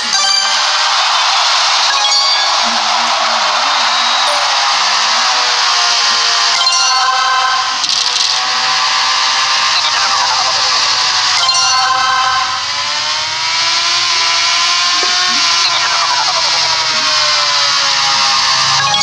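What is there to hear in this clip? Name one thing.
A racing motorcycle engine screams at high speed, its pitch rising and falling with gear changes.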